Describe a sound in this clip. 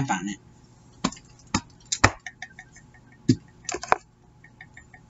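A rubber stamp knocks against a table.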